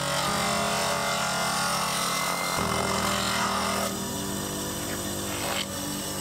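A bench grinder motor hums steadily.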